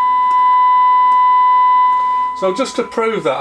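A radio plays a steady high test tone through its small loudspeaker.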